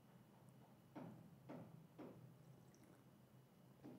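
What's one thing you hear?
A man sips a drink quietly.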